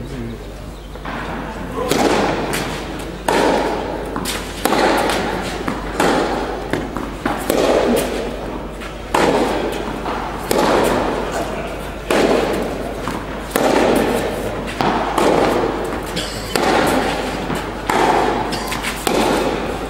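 A tennis ball is struck with a racket again and again.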